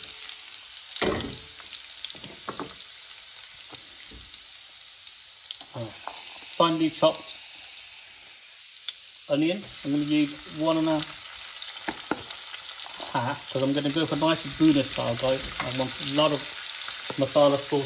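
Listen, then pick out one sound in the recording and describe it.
Onions sizzle steadily in a hot pan.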